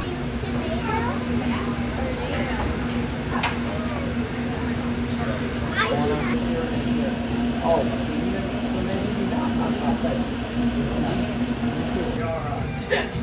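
Food sizzles on a hot griddle.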